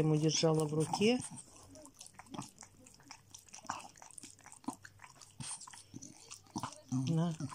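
A dog licks and nibbles at a piece of fruit with wet smacking sounds.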